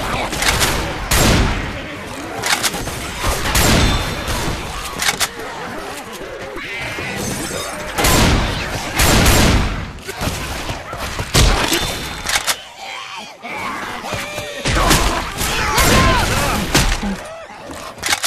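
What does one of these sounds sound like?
A shotgun fires loud, booming shots in quick bursts.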